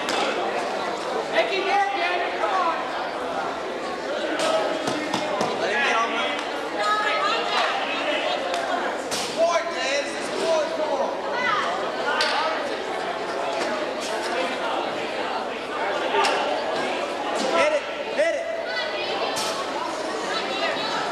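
Wrestling shoes squeak and scuff on a mat.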